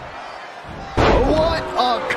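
A body slams heavily onto a wrestling mat.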